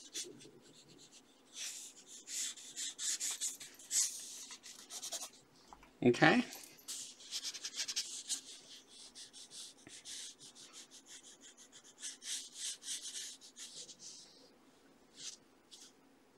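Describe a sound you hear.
A pencil scratches quickly across paper in short strokes.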